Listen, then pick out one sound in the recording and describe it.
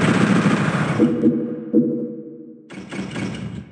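A monster lets out a low, groaning death cry.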